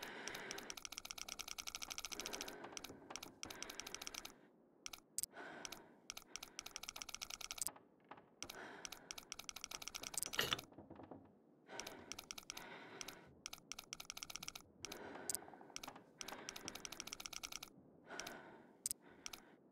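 A combination dial clicks rapidly as it turns.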